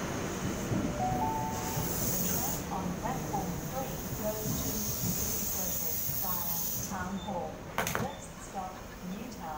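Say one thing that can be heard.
Train brakes squeal as the train slows to a stop.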